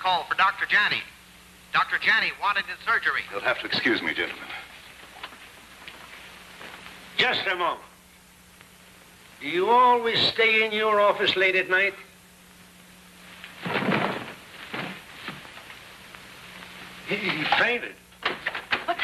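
Several men talk with one another in turn.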